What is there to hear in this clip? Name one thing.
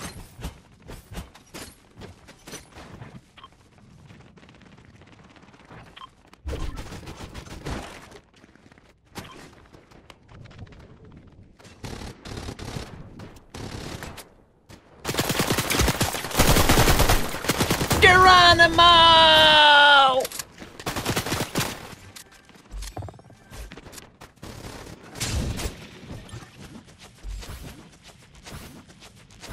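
Footsteps patter quickly over hard floors and stairs.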